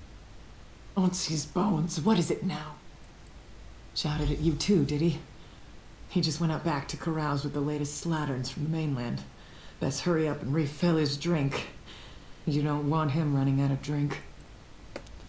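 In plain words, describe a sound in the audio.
A woman speaks calmly in a clear, close voice.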